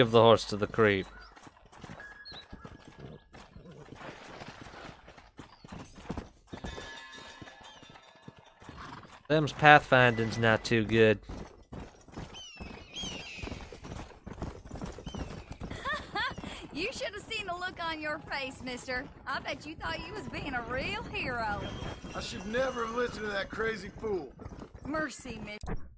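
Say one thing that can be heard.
Horse hooves pound the ground at a gallop.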